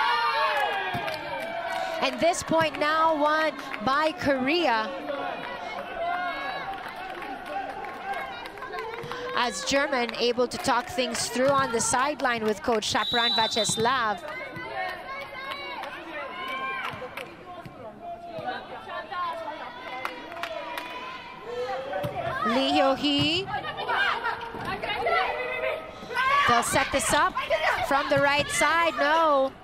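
A crowd cheers and chants in a large echoing arena.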